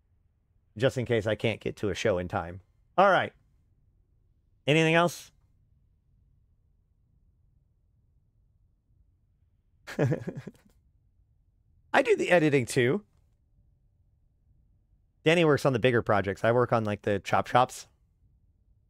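A man talks with animation into a close microphone, in short bursts.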